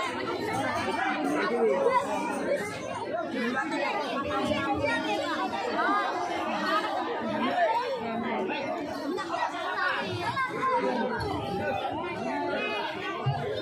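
A large outdoor crowd of children and adults chatters and shouts all around.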